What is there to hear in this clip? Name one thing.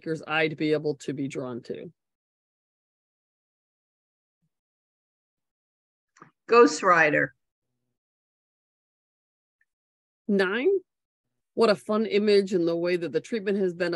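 A woman speaks calmly into a close microphone, in short bursts with long pauses.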